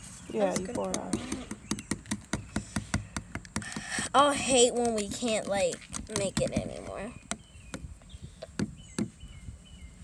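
Plastic lids click and tap.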